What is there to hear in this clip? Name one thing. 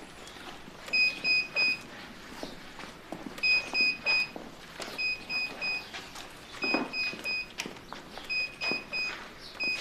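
An electronic device beeps in quick sets of three, over and over.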